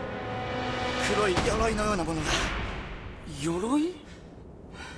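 A young man speaks tensely and close by.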